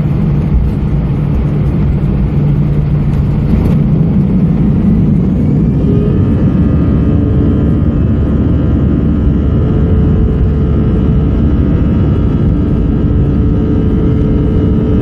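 An airliner's wheels rumble along a runway.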